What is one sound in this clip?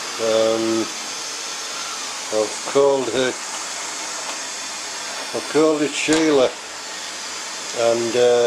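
A robot vacuum cleaner whirs steadily as it moves across a hard floor.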